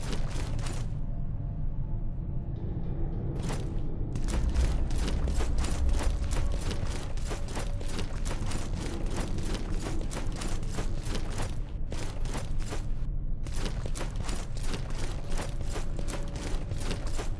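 Armored footsteps run over stone.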